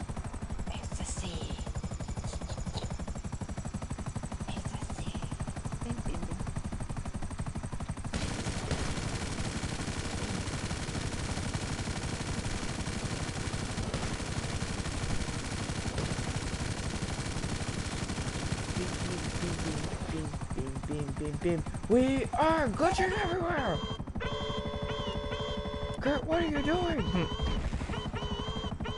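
A helicopter's rotor thumps and its engine drones steadily.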